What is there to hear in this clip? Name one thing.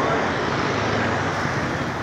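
A motorcycle engine hums along a street.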